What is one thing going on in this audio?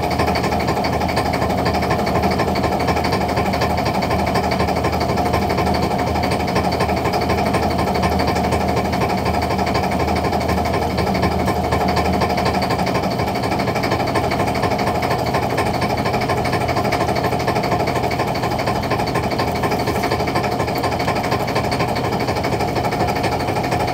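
A machine drones loudly and steadily.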